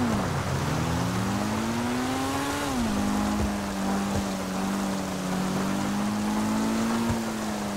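A sports car engine hums steadily, its pitch rising and then dropping as it shifts gears.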